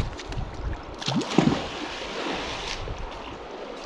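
A heavy object splashes into water.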